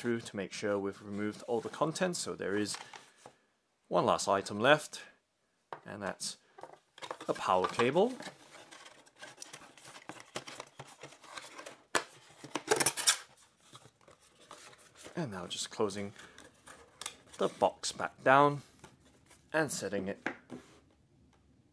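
Cardboard rustles and scrapes as a box is opened and handled.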